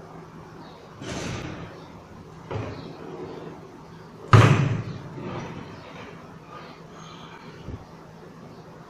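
A plastic fan cage knocks and rattles as it is handled.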